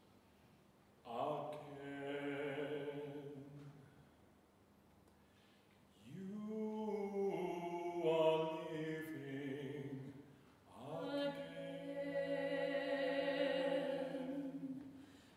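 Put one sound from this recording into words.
A woman sings in a large echoing hall.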